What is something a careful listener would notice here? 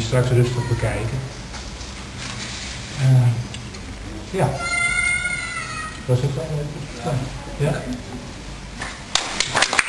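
A middle-aged man speaks with animation through a microphone, pausing now and then.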